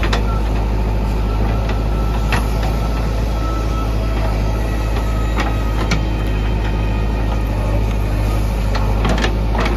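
A metal bucket scrapes and clanks through dirt.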